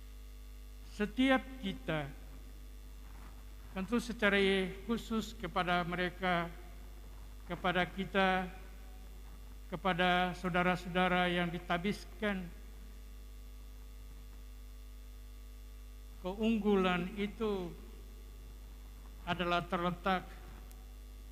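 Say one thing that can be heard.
An elderly man speaks slowly and calmly into a microphone, in short phrases with long pauses.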